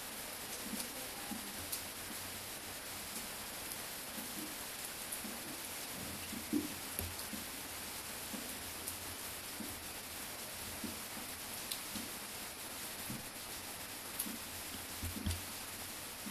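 Electrical tape rustles as it is wrapped.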